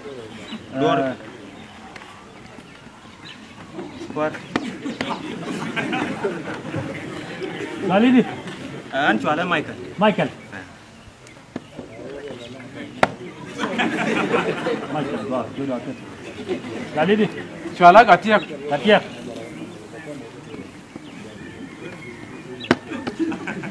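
Young men talk with animation outdoors, close by.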